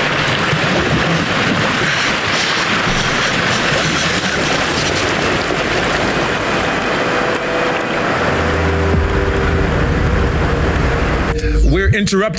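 Water churns and splashes around a small boat.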